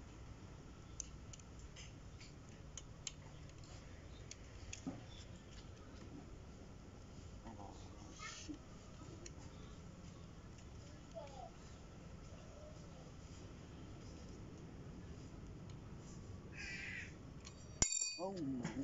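Small metal parts click softly as a bicycle part is fitted by hand.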